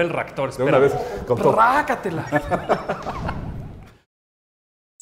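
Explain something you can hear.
A man talks with animation.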